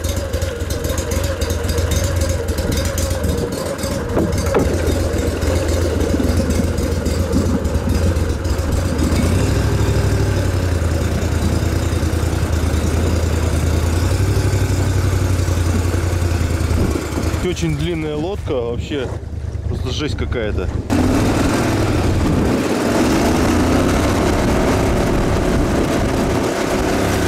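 An outboard motor drones steadily as a small boat speeds over water.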